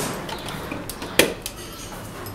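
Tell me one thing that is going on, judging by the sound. A plug clicks into a wall socket.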